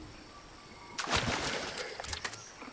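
A fishing lure splashes into water.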